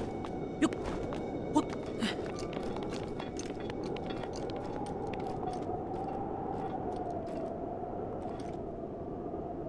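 Footsteps crunch on rock and snow.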